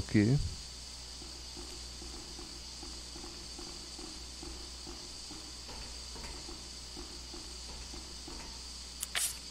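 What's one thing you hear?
Footsteps clang quietly on a metal walkway.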